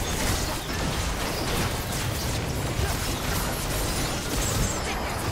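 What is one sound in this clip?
Game characters clash with sharp hits.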